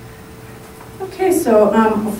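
A woman speaks into a microphone over a loudspeaker in an echoing room.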